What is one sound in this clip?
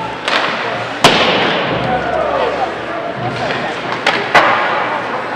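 A hockey stick cracks against a puck.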